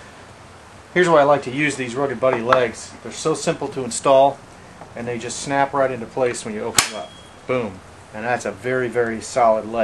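A man talks calmly close by, explaining.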